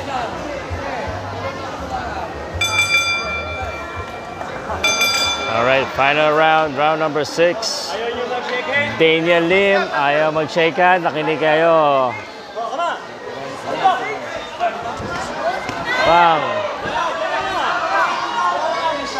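A crowd murmurs and cheers in a large open hall.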